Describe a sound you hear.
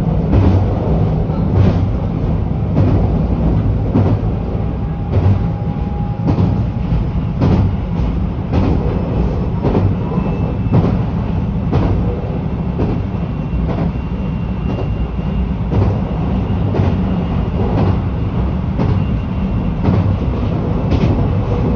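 Train wheels clack over rail joints in a steady rhythm.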